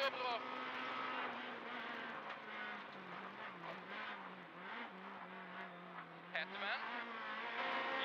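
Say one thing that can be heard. A rally car engine roars loudly from inside the cabin, rising and falling as gears change.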